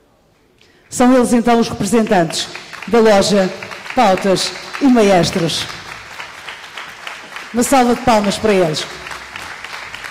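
A woman's voice rings out loudly through a loudspeaker in a large echoing hall.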